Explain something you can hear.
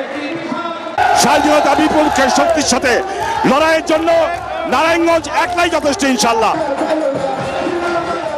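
A middle-aged man speaks forcefully into a microphone through loudspeakers.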